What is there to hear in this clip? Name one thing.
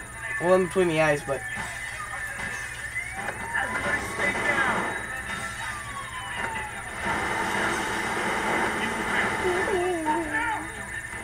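Video game sounds play through a television speaker.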